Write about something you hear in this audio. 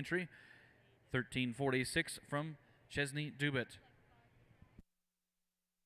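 A man announces through a loudspeaker in a large echoing hall.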